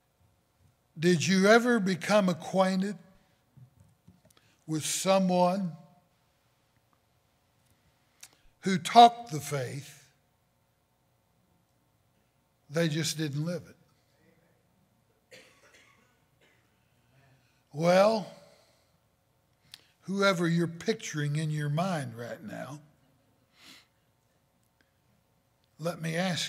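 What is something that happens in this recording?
An elderly man speaks through a microphone in measured phrases with long pauses.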